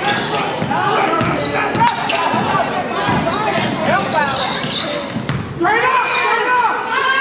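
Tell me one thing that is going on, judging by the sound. Sneakers squeak sharply on a hard court floor in a large echoing gym.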